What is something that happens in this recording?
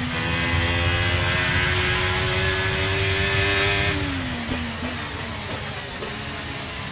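A racing car engine whines at high speed, holding steady and then dropping in pitch as the car slows.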